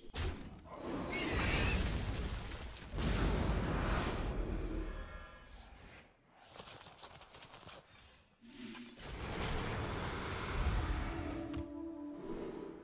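Magical effects whoosh and rumble in a video game.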